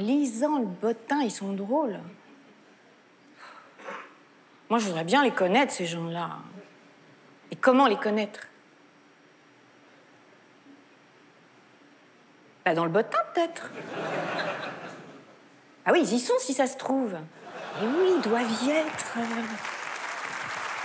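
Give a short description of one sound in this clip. A woman speaks with feeling into a microphone, with long pauses.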